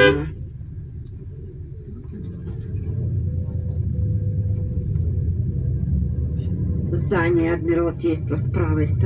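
A vehicle's engine rumbles low and steadily from inside as it drives along.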